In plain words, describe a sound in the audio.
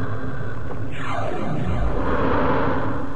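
An electronic warping whoosh sounds.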